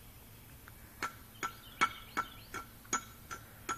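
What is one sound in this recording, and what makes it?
A small child slaps a hand against concrete blocks in quick, even beats.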